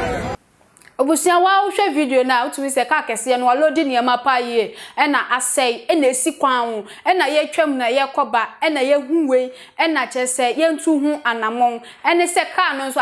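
A young woman speaks clearly and with animation into a microphone.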